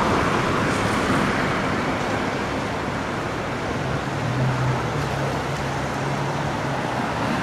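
A swollen river rushes and churns steadily outdoors.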